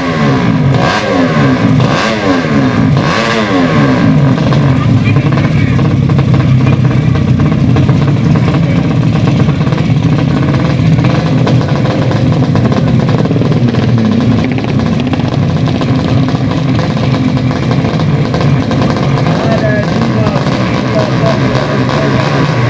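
Motorcycle engines drone steadily at idle.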